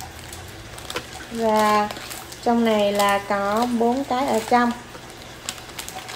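A plastic wrapper crinkles as a snack is opened.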